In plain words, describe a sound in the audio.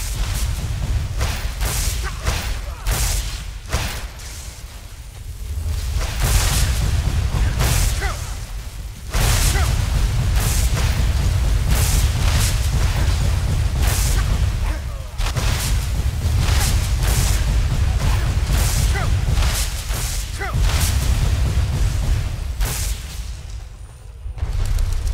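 Fiery explosions rumble with a deep roar.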